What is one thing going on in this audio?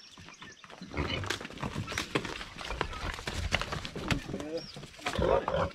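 A pig grunts and snorts close by.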